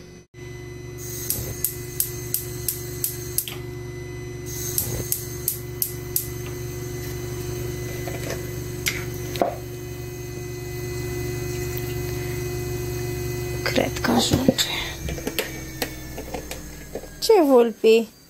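A gas burner hisses and roars steadily.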